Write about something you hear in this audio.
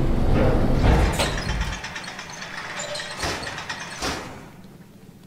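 A metal folding gate rattles and clanks open.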